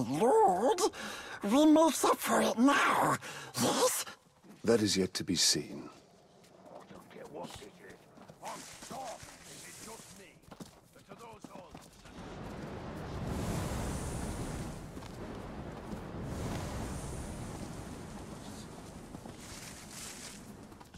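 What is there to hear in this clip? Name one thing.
Footsteps hurry over dirt and rock.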